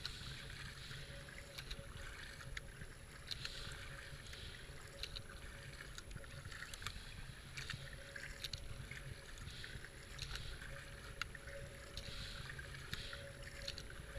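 Water ripples and trickles along a kayak's hull.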